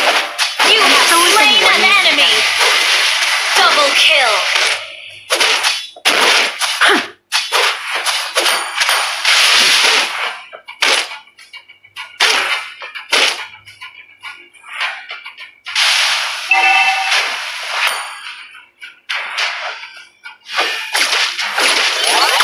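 Fight sound effects clash and burst in a game.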